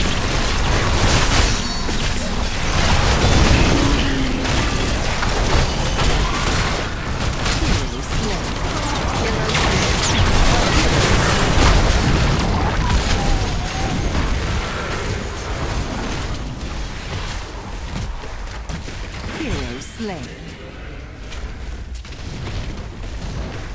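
Video game battle effects clash and burst in a dense, busy mix.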